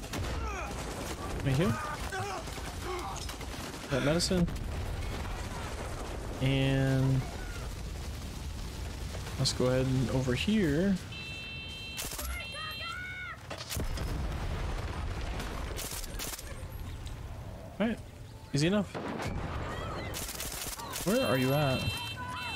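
Gunshots fire in short bursts.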